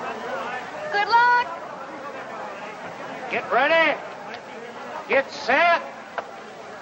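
A man shouts to urge on a team of horses.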